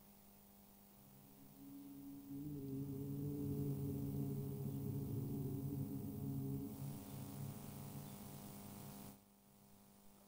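A man chants a long, steady note into a microphone.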